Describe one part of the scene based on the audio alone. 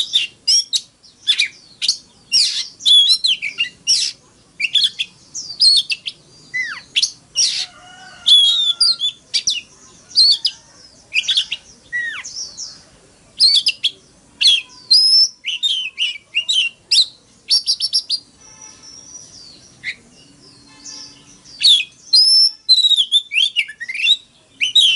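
A songbird sings loud, varied phrases of whistles and chirps close by.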